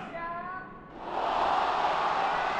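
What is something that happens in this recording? A crowd cheers.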